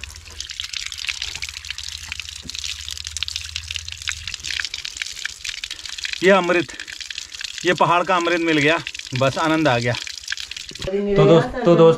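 Water pours from a pipe and splashes.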